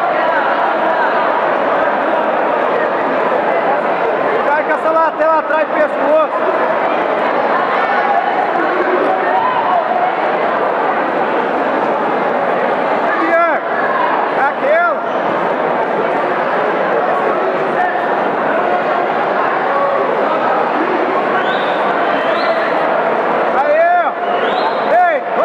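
A crowd chatters and shouts steadily in a large room.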